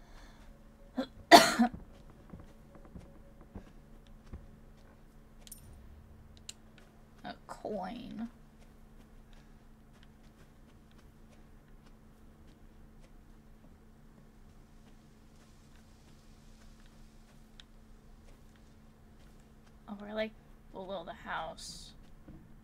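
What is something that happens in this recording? A young woman talks in short bursts, close to a microphone.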